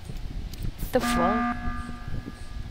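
An alarm blares as a game's emergency meeting is called.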